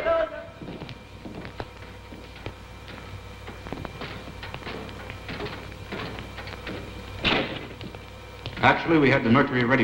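Footsteps clank down a metal grate stairway.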